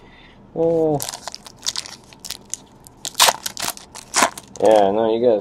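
A foil trading card pack crinkles and tears open.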